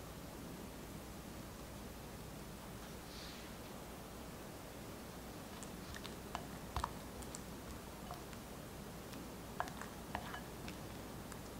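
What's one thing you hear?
A spatula scrapes and taps against a glass bowl.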